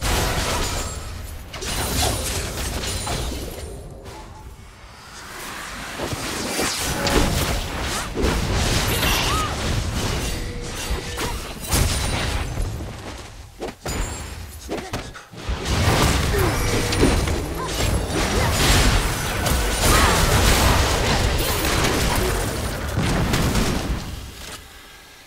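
Video game spell effects whoosh, crackle and clash in a busy fight.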